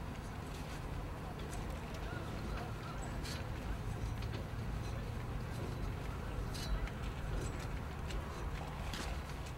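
A man's boots knock on a metal scaffold as he climbs down.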